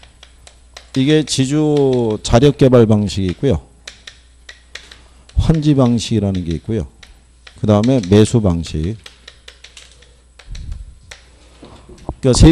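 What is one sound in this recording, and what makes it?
A man lectures with animation through a microphone.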